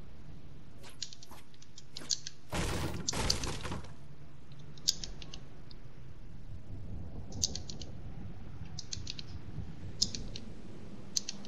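Wooden walls snap into place with quick, sharp clicks.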